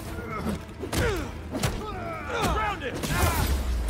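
Punches and blows land with sharp thuds.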